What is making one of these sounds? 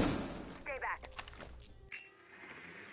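Electronic static crackles and hisses.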